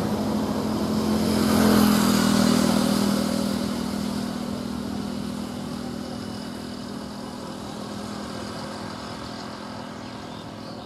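A motorbike engine passes close by and fades away.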